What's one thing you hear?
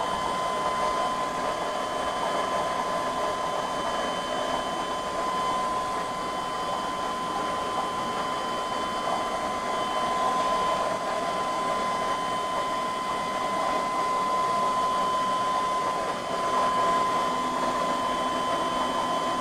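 An air pump hums steadily.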